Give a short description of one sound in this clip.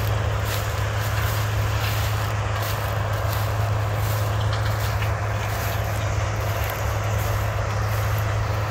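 A combine harvester drones at a distance while harvesting corn.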